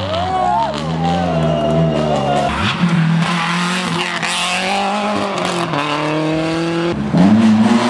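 Tyres spray water and slush on a wet road.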